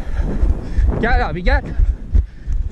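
A man shouts loudly across the pitch.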